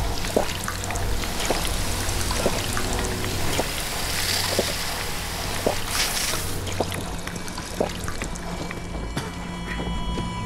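Footsteps thud steadily on wooden boards.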